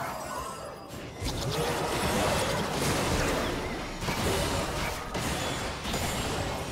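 Magic blasts and hits crackle and boom in a busy fight.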